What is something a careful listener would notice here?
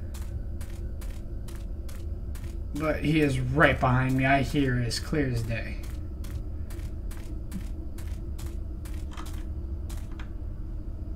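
Footsteps crunch steadily on dry ground.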